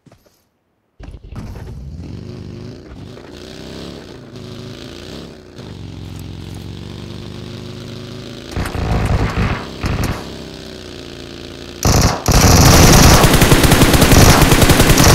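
A buggy engine drones and revs as the vehicle drives over rough ground.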